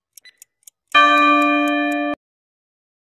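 A buzzer sounds briefly when the countdown ends.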